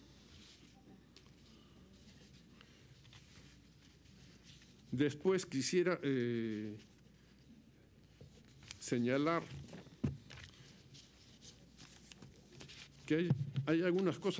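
Paper rustles as pages are turned.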